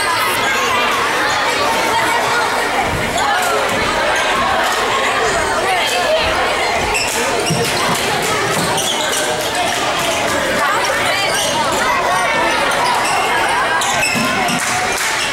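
A crowd of spectators cheers and chatters in an echoing gym.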